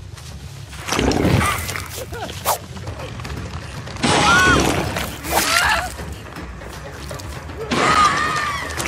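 A woman screams in pain.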